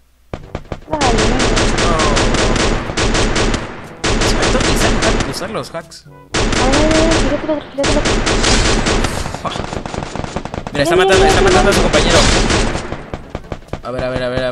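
A machine gun fires rapid bursts of shots.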